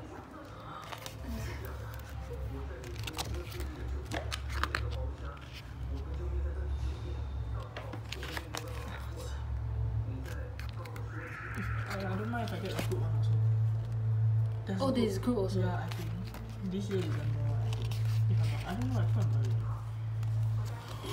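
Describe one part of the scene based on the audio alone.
Glossy pages of a thick book are flipped and rustle close by.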